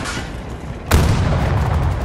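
A large explosion booms close by.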